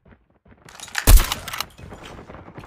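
A sniper rifle fires a single loud, sharp shot.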